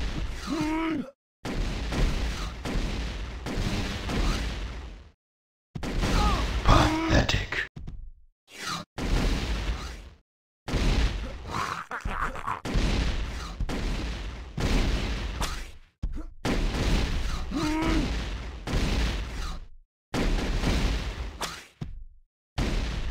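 A gun fires repeated energy shots in bursts.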